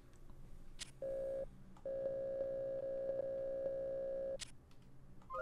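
A computer terminal gives out a steady electronic tone.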